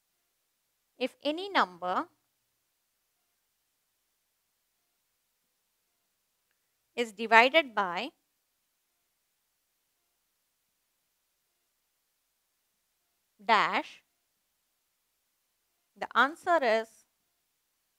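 A woman speaks calmly in short phrases.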